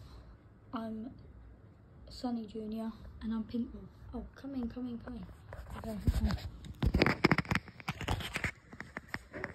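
Rubber toy balls rustle and bump as a hand handles them.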